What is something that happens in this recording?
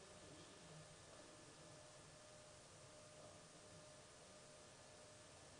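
A woman whispers quietly nearby.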